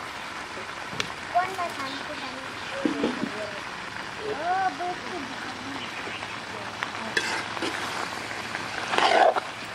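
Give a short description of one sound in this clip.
A metal spoon scrapes and clatters against a wok.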